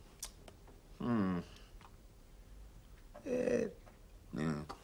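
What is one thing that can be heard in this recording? An elderly man speaks calmly, nearby.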